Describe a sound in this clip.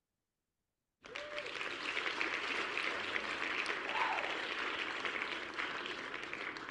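Applause and cheering burst out and carry on.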